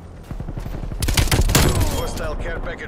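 Rifle gunfire rattles in a quick burst.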